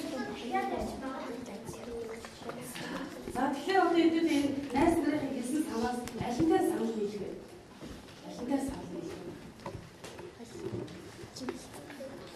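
A woman speaks with animation to a room of children.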